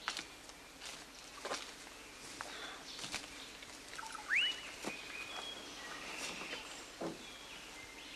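Footsteps crunch on the forest floor.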